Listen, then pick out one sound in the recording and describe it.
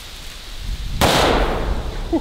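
A pistol fires a single loud shot outdoors.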